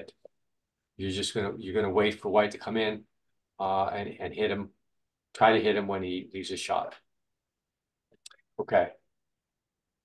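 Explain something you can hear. An older man speaks calmly over an online call.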